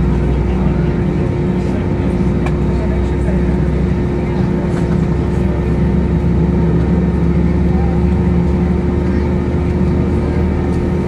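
Jet engines roar steadily from inside an aircraft cabin.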